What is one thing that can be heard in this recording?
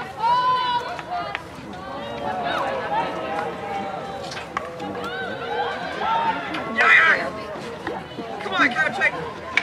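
Hockey sticks clack against a ball.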